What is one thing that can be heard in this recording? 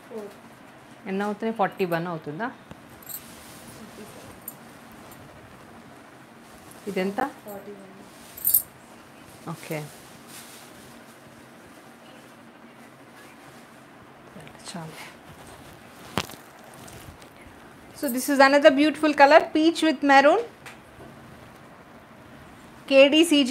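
A woman speaks calmly and close by, in short bursts.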